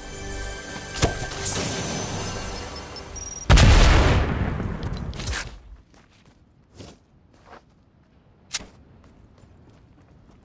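Short chimes ring as items are picked up.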